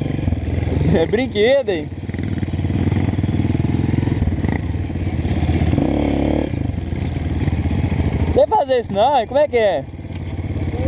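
A motorbike engine revs sharply, rising and falling in pitch.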